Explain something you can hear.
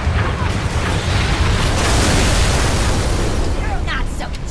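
A red beam weapon hums loudly as it fires.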